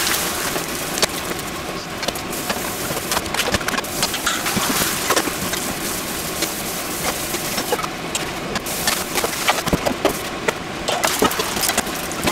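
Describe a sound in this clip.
A metal spatula scrapes and taps against a frying pan.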